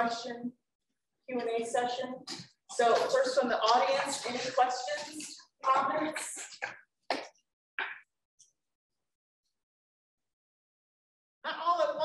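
A woman speaks calmly over a microphone.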